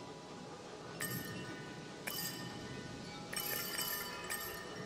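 Soft, bright menu chimes ring out several times.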